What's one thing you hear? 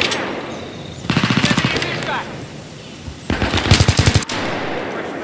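A rifle fires short, loud bursts close by.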